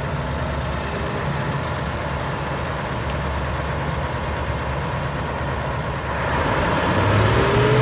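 A forage harvester chops through maize stalks with a rushing whir that grows louder.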